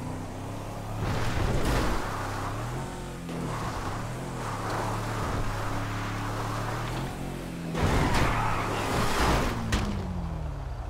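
Tyres rumble and crunch over rough grass and dirt.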